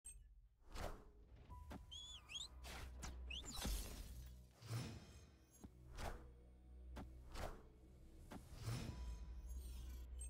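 Swishing game sound effects play as cards move and flip.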